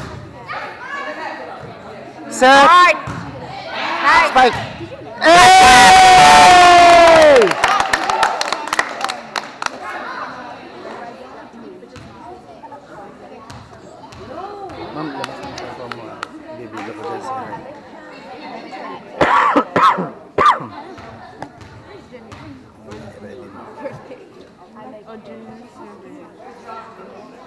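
Young players call out to each other across the court.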